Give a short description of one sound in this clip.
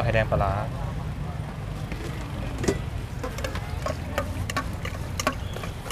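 A metal ladle clinks and scrapes in a stainless steel bowl of liquid.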